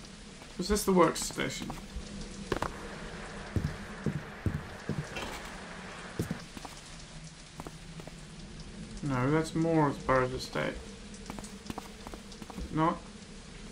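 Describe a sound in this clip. Footsteps tread slowly on stone.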